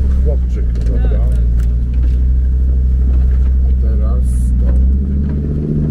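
Water splashes under a vehicle driving along a flooded track.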